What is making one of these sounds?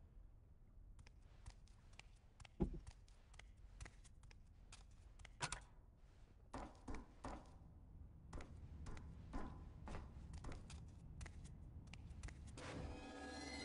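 Footsteps tap on a hard floor at a steady walking pace.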